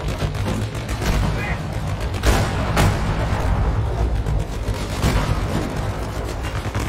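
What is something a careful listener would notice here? Shells explode nearby.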